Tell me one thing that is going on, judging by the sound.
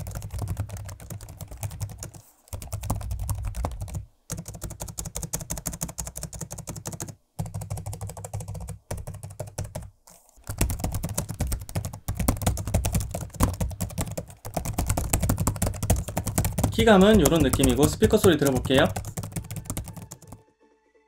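Fingers type rapidly on a laptop keyboard, the keys clicking and clacking.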